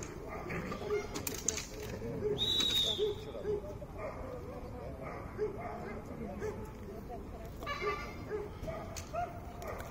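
A man calls out commands to a dog outdoors.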